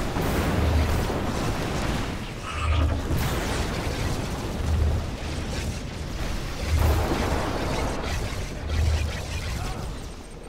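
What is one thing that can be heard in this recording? Weapons fire and blast in a busy battle.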